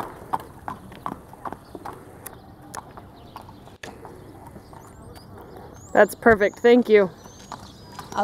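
Horse hooves clop on pavement at a steady walk.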